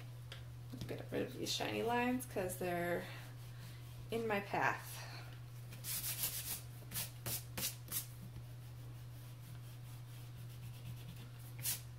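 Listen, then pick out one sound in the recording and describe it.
An eraser rubs back and forth on paper.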